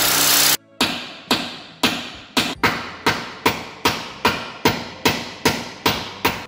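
A hammer taps repeatedly on metal in a steady rhythm.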